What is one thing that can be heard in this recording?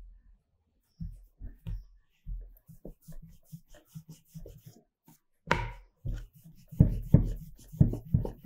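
A wooden rolling pin thumps and rolls on a wooden board.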